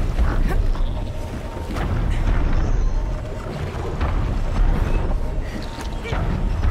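A large metal machine groans and clanks heavily.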